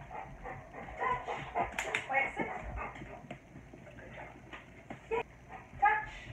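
A dog whines and yowls nearby.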